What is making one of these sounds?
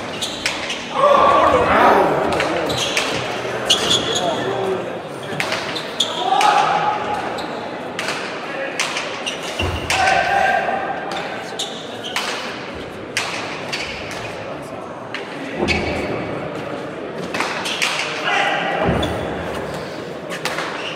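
A crowd murmurs and cheers in an echoing hall.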